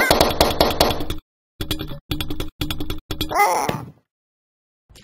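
A cartoon cat squeals and yowls in a high, squeaky voice.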